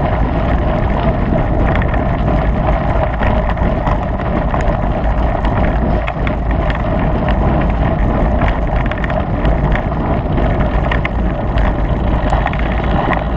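A motorbike engine roars steadily while riding.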